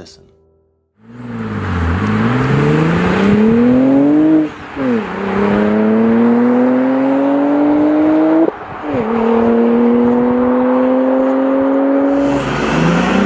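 A car engine roars as it accelerates hard, rising in pitch and dropping briefly at each gear change.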